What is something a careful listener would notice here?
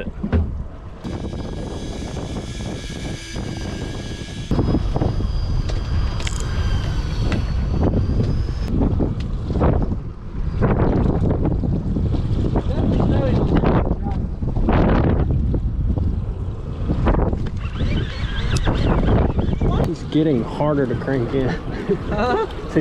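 Wind rumbles steadily outdoors over open water.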